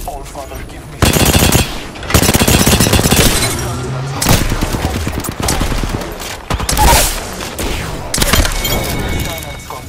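Gunfire rattles in rapid bursts, close by.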